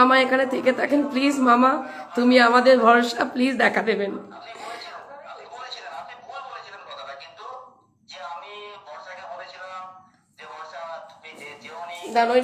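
A woman talks with animation, close by.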